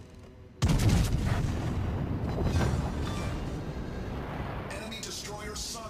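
Heavy guns fire with a deep, loud boom that rolls on and slowly fades.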